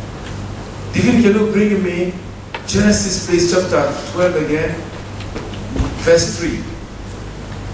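A man speaks with animation through a microphone and loudspeakers in an echoing hall.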